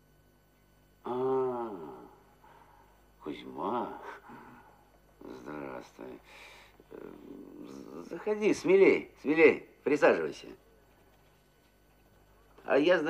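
Another middle-aged man answers calmly nearby.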